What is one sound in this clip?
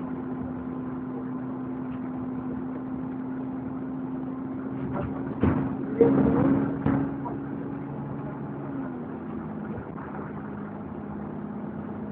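A bus engine hums steadily, then shifts lower as the bus changes gear.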